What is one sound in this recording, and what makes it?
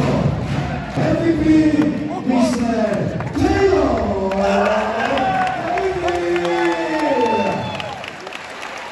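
A large crowd sings and chants loudly in an echoing hall.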